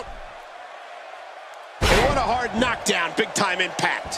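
A wrestler's body slams heavily onto the ring mat.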